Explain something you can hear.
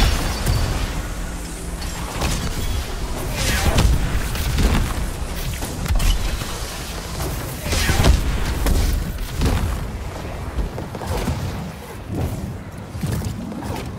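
Explosions boom and crackle in a rapid game battle.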